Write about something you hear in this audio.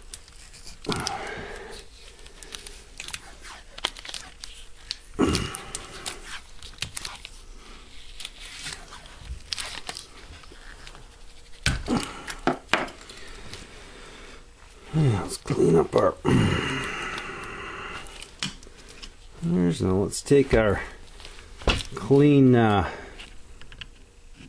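Hands knock and click small metal parts together close by.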